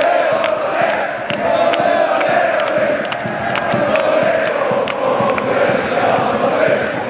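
A large crowd of men chants loudly in unison.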